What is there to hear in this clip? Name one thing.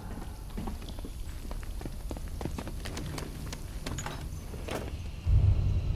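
Hands and feet clank on a metal ladder while climbing.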